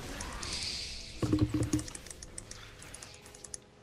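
Fighting sounds from a video game clash and crackle.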